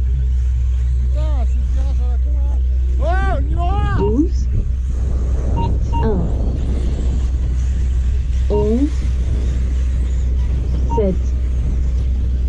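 Small motorised model cars whine loudly as they speed past.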